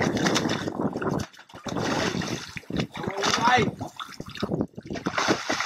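A fish thrashes and splashes at the water's surface close by.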